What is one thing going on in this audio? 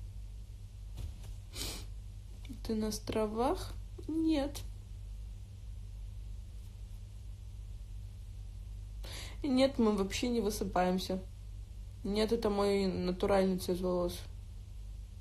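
A young woman speaks casually into a nearby phone microphone, in short bursts with pauses.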